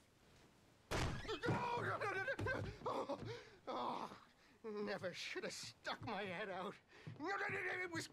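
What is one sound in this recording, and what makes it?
A man speaks fearfully, pleading.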